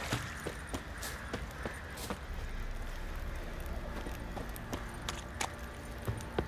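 Footsteps thud on soft ground at a quick, steady pace.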